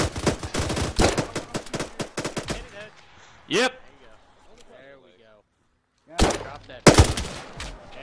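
Rapid gunshots fire in quick bursts, close by.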